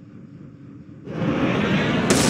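Gunfire crackles loudly near the end.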